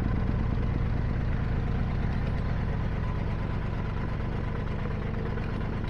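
A boat's engine chugs steadily at low speed.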